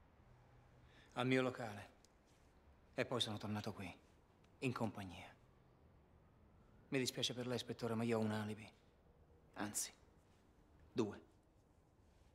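A second man answers in a low, serious voice, close by.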